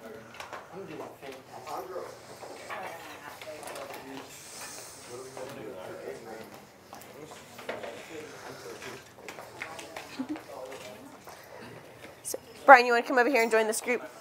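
Several men and women chatter nearby in a room.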